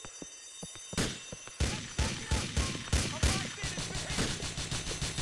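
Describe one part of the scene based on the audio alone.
Rapid gunfire from a rifle rings out in bursts.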